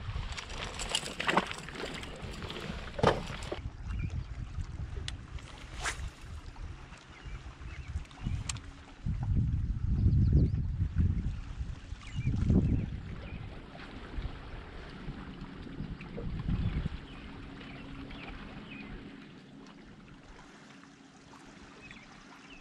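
Wind rumbles outdoors over open water.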